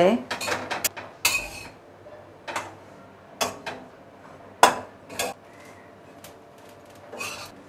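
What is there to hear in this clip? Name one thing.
A metal spatula clanks against the rim of a pan.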